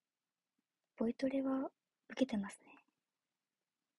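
A young woman speaks briefly and calmly, close by.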